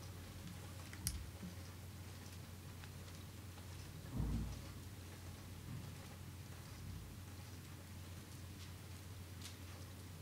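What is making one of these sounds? Mahjong tiles click softly on a table.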